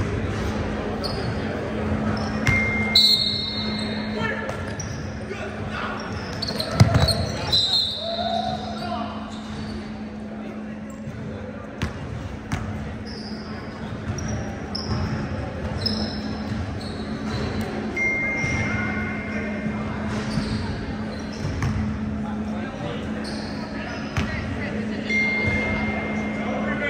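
Young men call out across a large echoing gym.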